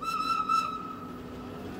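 A train horn sounds briefly.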